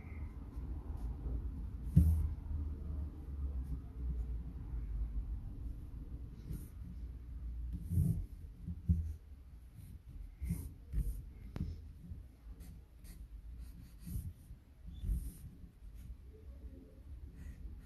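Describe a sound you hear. A pen scratches and scrapes across paper.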